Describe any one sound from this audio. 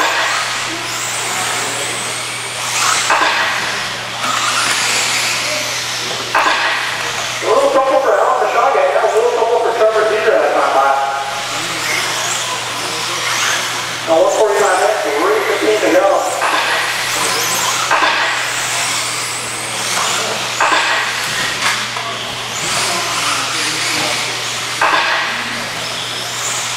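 Small electric model cars whine at high speed, their pitch rising and falling as they race past.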